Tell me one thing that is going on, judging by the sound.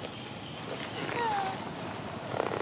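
A young monkey squeaks in a short, high call close by.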